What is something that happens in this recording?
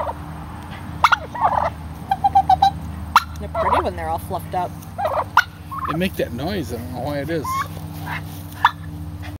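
Turkeys gobble and warble loudly close by.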